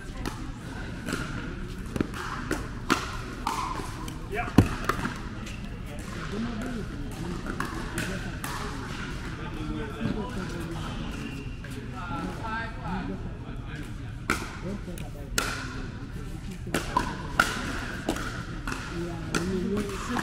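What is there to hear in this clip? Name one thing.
Sneakers squeak on the court floor.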